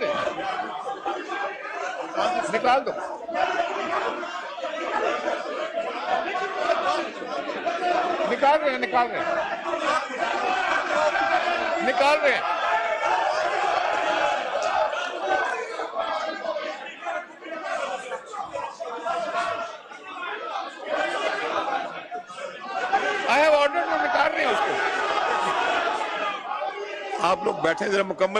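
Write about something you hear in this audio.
Many men talk over one another in a large echoing hall.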